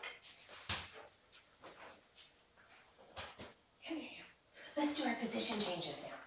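A dog's paws patter on a hard floor.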